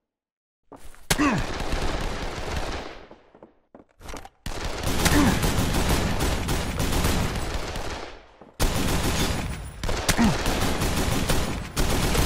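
A mounted machine gun fires rapid, loud bursts.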